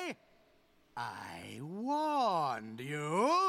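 An elderly man laughs with a deep, wavering, menacing cackle.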